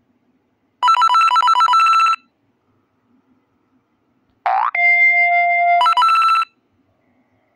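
Bright electronic chimes ring in quick bursts as a game character collects items.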